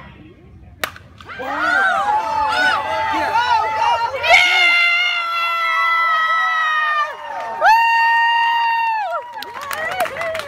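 Spectators cheer and shout loudly outdoors.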